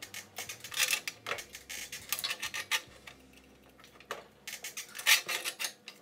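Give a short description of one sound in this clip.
A thin steel sheet flexes and rattles as it is handled.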